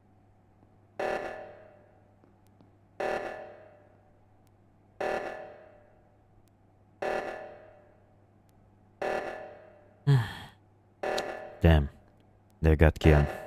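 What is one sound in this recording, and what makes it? An alarm blares in short bursts that repeat every two seconds.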